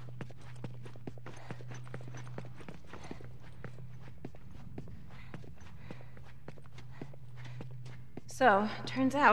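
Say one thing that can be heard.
Footsteps scuff softly on a gritty floor.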